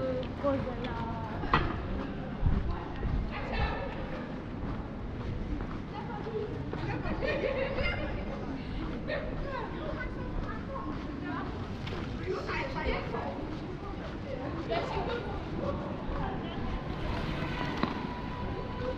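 Voices of passers-by chatter faintly in an open street.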